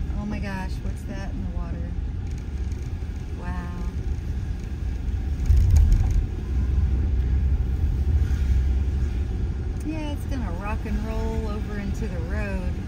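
A car drives along a wet road with a steady low rumble.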